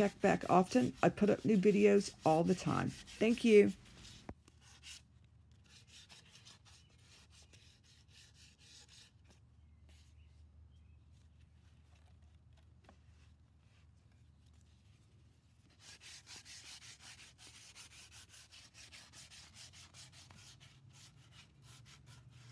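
Fabric rustles and brushes softly as hands fit it in place.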